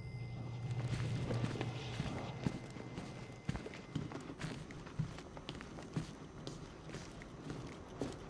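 Boots step slowly on a hard floor.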